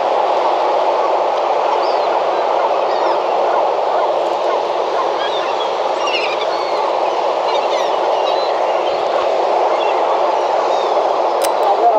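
Seagulls call overhead.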